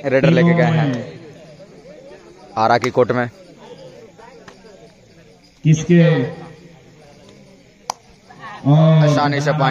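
A young man chants loudly in short, repeated bursts close by.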